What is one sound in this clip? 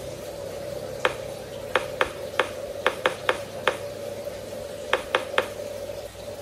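Sharp clicks sound in quick bursts as a combination lock's dials are turned.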